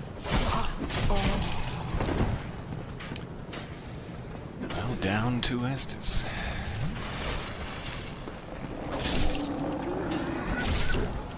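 A sword slashes and strikes bony attackers with sharp impacts.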